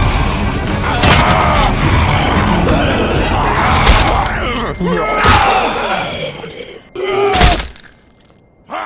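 Blows thud and splatter.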